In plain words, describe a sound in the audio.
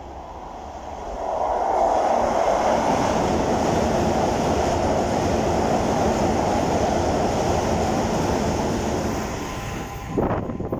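A train rushes past close by with a loud, steady roar that fades as it leaves.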